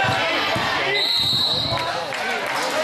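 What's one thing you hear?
A referee blows a shrill whistle.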